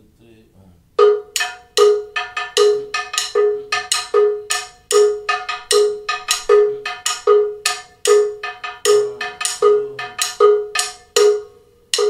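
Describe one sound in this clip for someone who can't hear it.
A drum is struck in a steady, ringing rhythm.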